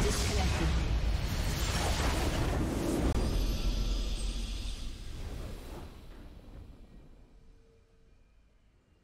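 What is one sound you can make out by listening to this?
A triumphant victory fanfare swells and then slowly fades out.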